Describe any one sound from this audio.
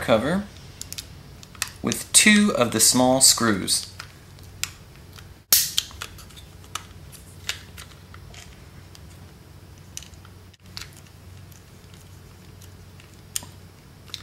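A small screwdriver turns a screw into a plastic gearbox.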